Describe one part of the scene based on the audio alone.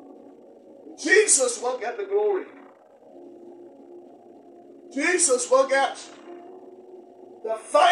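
A man speaks loudly with emphasis into a microphone, in bursts with pauses.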